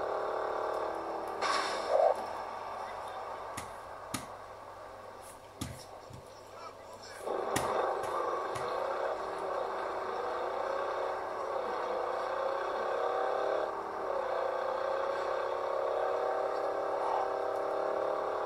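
A car engine drones and revs through a small speaker.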